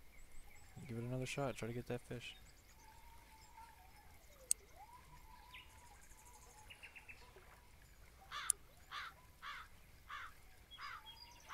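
A fishing reel whirs as line is wound in.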